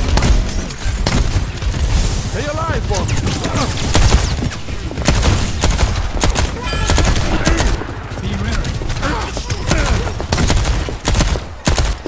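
Automatic gunfire crackles in rapid bursts in a video game.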